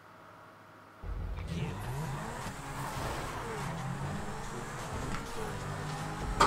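A sports car engine hums and revs while driving.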